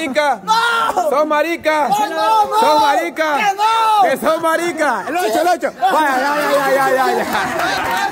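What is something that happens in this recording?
A young man cries out and wails loudly close by.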